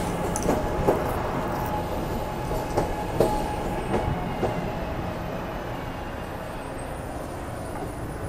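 A subway train rolls along the platform with a loud, steady rumble.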